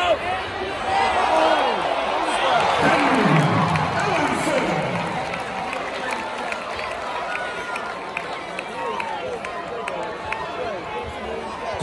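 A crowd cheers and shouts in a big echoing arena.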